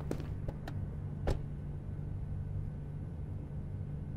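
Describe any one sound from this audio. A car engine hums as a car drives off slowly.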